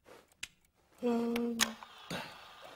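A tape recorder clicks on.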